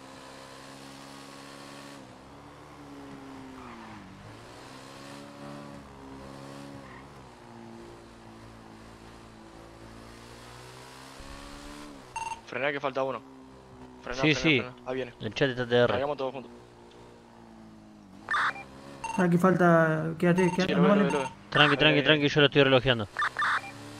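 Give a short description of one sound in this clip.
A motorcycle engine hums steadily and rises and falls in pitch as it rides along.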